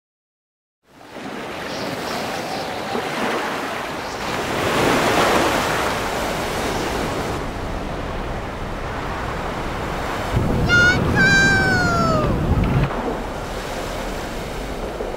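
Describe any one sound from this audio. Sea waves wash and rush.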